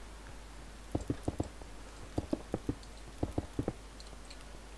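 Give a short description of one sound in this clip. Stone blocks crunch and crumble as they are broken.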